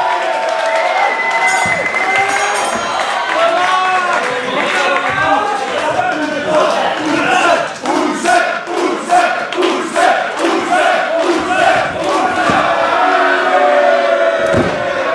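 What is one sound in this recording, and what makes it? A crowd chants and cheers loudly in an echoing hall.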